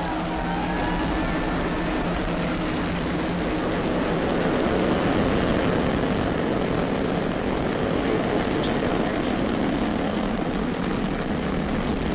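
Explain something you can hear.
A rocket engine roars and crackles steadily.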